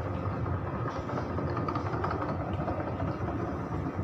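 A cleaning cart rolls past close by on a hard floor.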